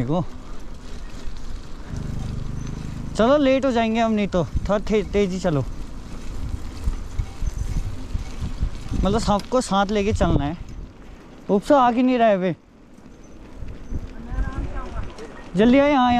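Bicycle tyres crunch and rumble over a gravel track.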